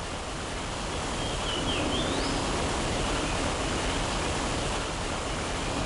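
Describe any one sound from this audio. A waterfall rushes loudly nearby.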